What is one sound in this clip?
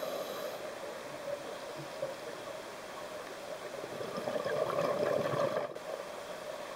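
Bubbles burble and hiss from a diver's breathing underwater.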